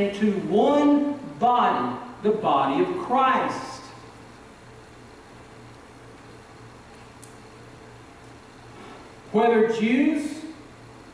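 A middle-aged man preaches with animation into a microphone, pausing between phrases.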